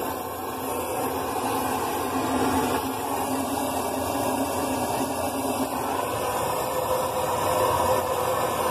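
A machine runs with a steady, loud rumble and whir.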